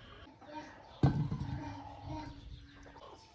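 An apple drops into a basin of water with a splash.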